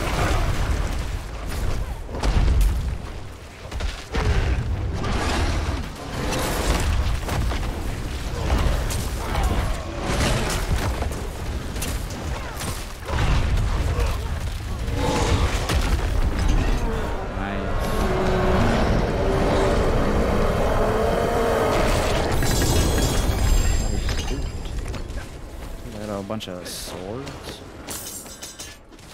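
Game combat effects boom and crash.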